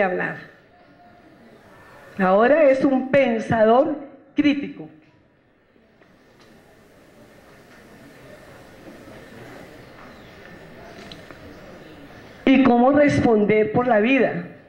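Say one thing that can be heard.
A woman speaks into a microphone through loudspeakers, in bursts with long pauses.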